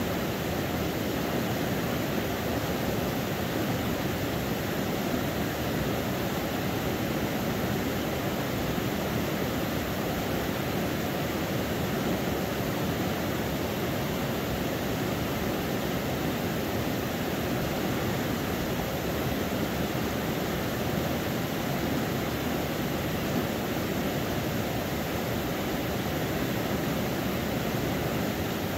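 Small waves lap gently against rocks along the shore.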